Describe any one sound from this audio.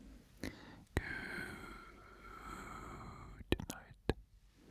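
A man whispers softly right into a microphone.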